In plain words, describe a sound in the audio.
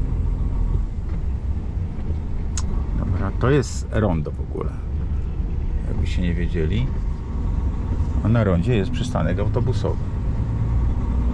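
A bus engine rumbles steadily while driving.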